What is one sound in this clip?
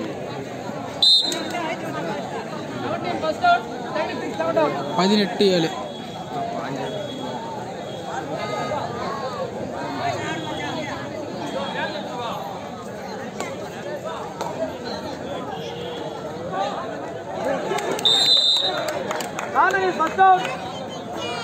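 Men shout loudly with excitement.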